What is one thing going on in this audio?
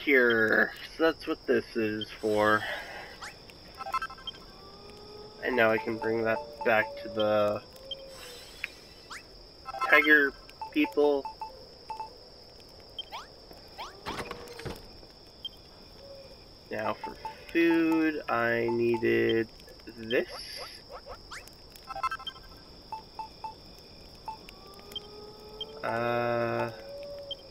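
Short electronic blips and chimes sound as menu items are scrolled and selected.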